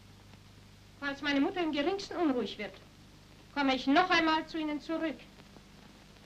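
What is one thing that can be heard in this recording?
A woman speaks with agitation, close by.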